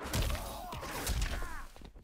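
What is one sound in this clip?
A burst of fire whooshes.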